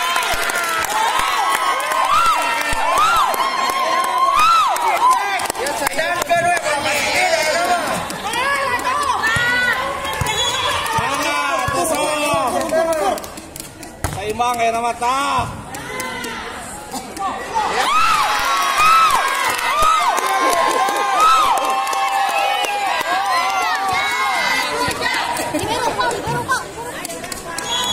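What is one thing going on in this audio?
Young players and onlookers shout and cheer outdoors.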